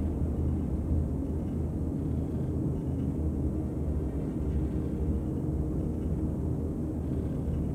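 A spacecraft engine hums with a steady low rumble.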